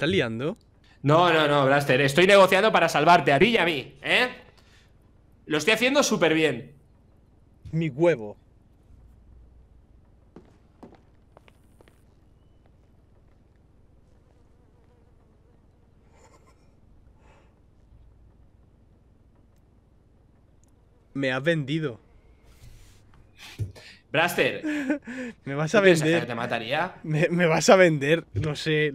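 A young man talks with animation close into a microphone.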